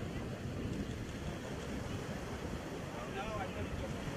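Shallow waves wash and splash around feet in the surf.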